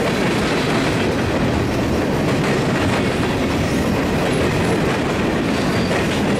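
Freight cars rumble and clatter loudly past on the rails, close by.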